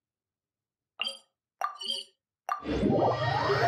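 Game menu clicks sound in quick succession.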